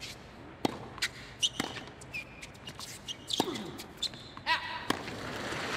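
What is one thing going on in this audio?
A tennis racket strikes a ball with sharp pops, back and forth.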